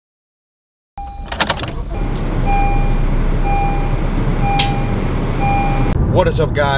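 A car warning chime beeps at an even pace.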